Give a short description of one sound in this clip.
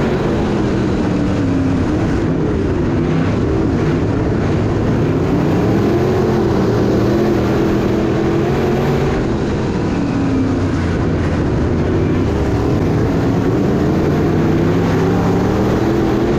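A race car engine roars loudly up close, its pitch rising and falling as it speeds up and slows down.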